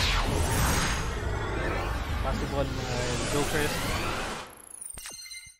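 A deep, roaring whoosh rushes past and then fades away.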